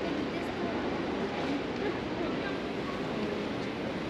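A young woman talks close by.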